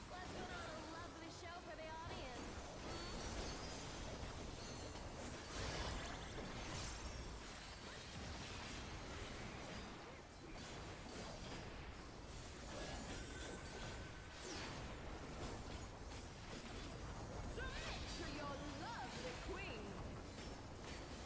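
Magic spells burst and whoosh in a busy battle.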